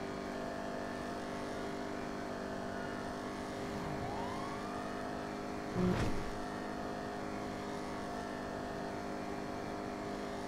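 A car engine hums steadily as the car drives fast along a road.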